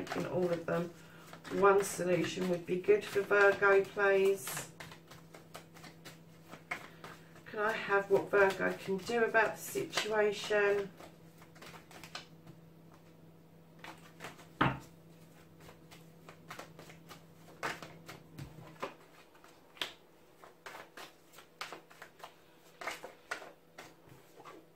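Playing cards shuffle with soft, quick flicks and taps.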